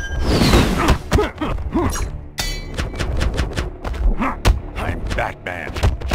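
A staff whooshes through the air.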